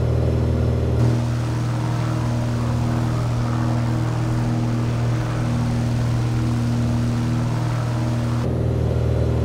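A propeller plane's engine hums with a rushing wind, heard from outside.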